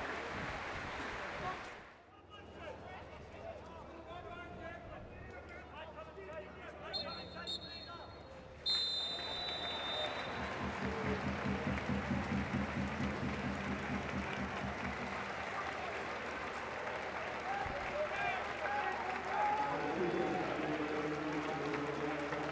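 A crowd murmurs and chants in a large open stadium.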